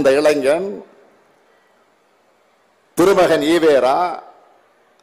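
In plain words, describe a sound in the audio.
A man speaks forcefully into a microphone over loudspeakers, with echo trailing off outdoors.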